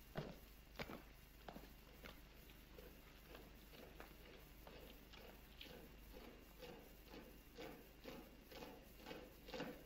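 Footsteps tap steadily on a pavement.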